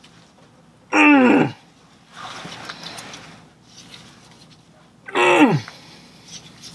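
A man grunts loudly with strain.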